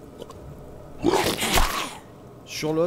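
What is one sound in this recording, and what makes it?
A magic beam fires with a sharp zap.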